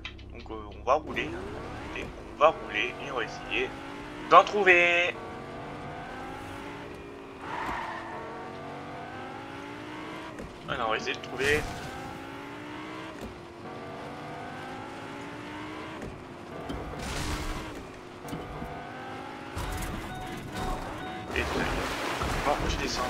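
A sports car engine roars and revs up and down as the car speeds along.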